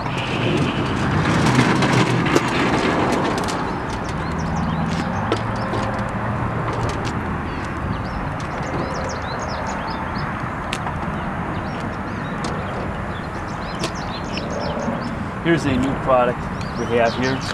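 The metal legs of a folding miter saw stand clank and rattle.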